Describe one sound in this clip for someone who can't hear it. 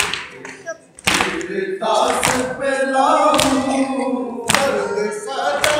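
A group of men and boys chant along in unison.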